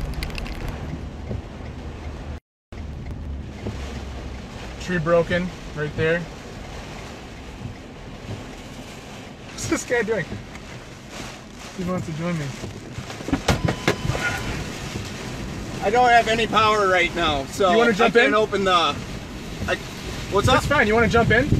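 Heavy rain pours down on a car's roof and windshield.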